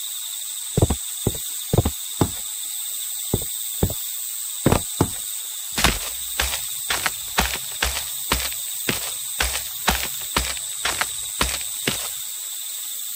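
Footsteps thud steadily on a hard walkway.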